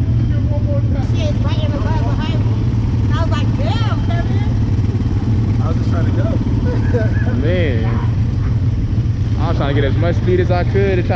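Young women talk close by.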